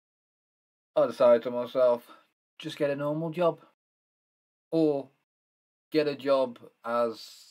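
A young man speaks calmly into a microphone, close by, with pauses.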